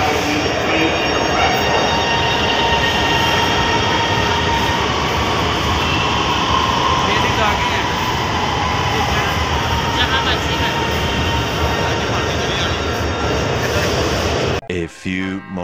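A train rumbles into a station and slows to a stop.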